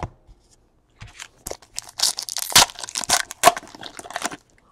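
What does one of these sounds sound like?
A foil wrapper crinkles and tears open in someone's hands.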